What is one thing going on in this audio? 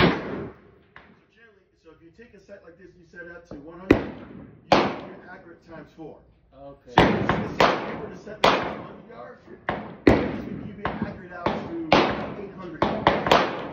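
Gunshots ring out close by, one after another, with a sharp echo.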